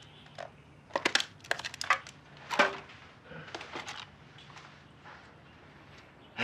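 A plastic bottle crinkles in an elderly man's hands.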